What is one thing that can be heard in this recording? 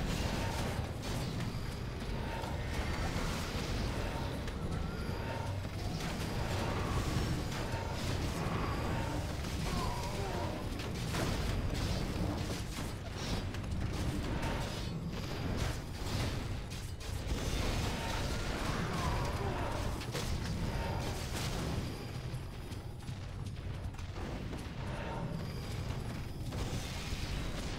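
Magic spells crackle and burst in a game battle.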